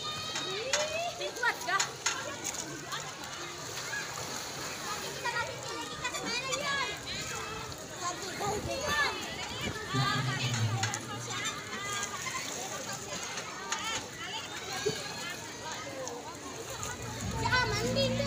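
Children shout and squeal playfully all around.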